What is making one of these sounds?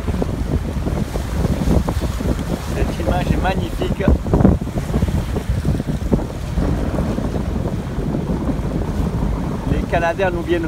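Wind buffets loudly across open water.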